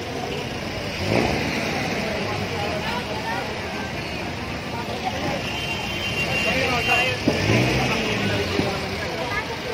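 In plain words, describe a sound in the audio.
A truck engine rumbles and revs nearby.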